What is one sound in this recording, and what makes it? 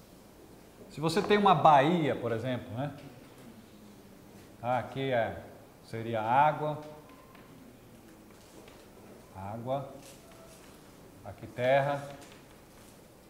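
A man speaks calmly to a room in short bursts.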